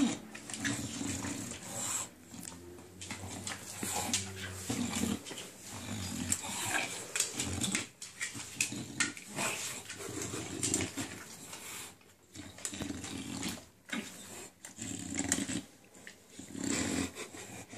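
A dog's claws click on a wooden floor.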